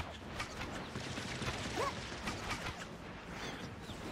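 Metal blades clash and swish.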